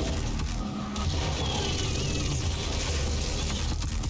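An explosion booms in a game.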